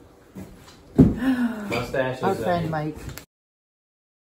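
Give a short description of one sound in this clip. An older woman talks and laughs close by.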